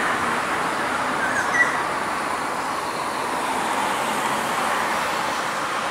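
A train rumbles away slowly into the distance.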